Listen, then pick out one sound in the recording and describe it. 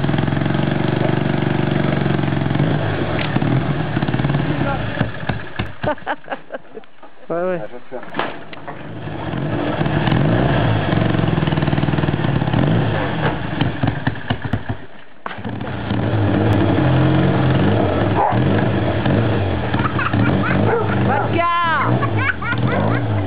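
A motorcycle engine idles and revs loudly close by.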